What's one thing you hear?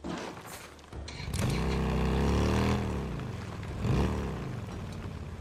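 A motorcycle engine starts and revs loudly.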